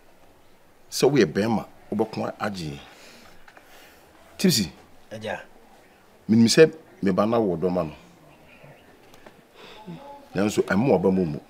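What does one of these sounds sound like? A middle-aged man speaks with animation close by.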